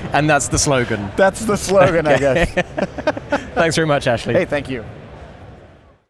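A middle-aged man laughs and chats cheerfully close by.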